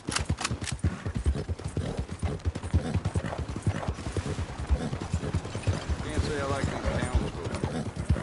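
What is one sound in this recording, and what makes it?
A horse-drawn wagon rattles past.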